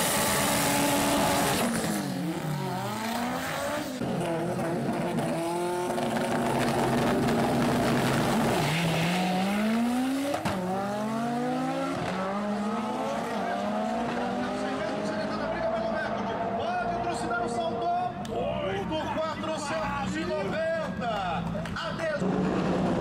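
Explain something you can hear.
A car engine roars loudly and revs up through the gears again and again.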